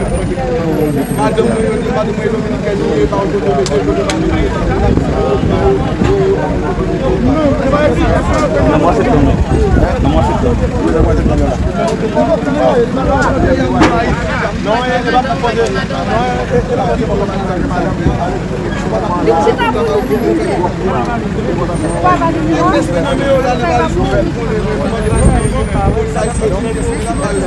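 A crowd murmurs and talks outdoors around the speaker.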